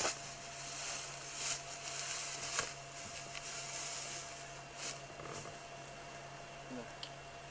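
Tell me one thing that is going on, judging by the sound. Dry brush rustles as a person moves through it.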